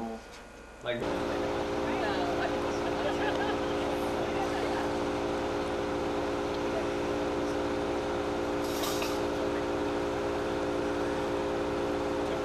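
People chat quietly outdoors.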